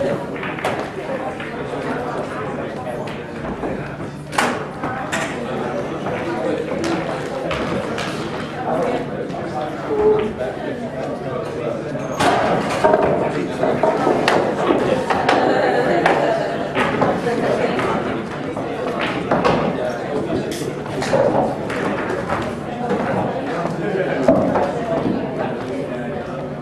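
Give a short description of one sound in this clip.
Men murmur quietly nearby.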